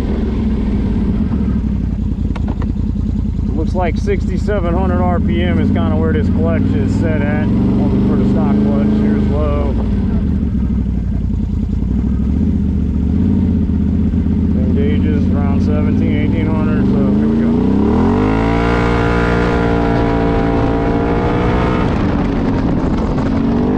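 An engine rumbles steadily at low speed.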